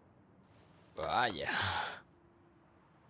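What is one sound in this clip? A young man exclaims loudly in surprise.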